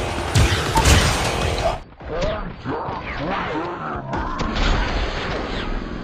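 A game explosion bursts with a roar.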